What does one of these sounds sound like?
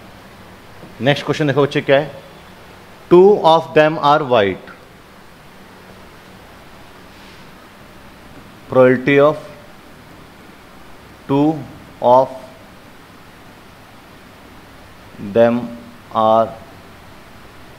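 A man speaks in short bursts through a close headset microphone, explaining calmly.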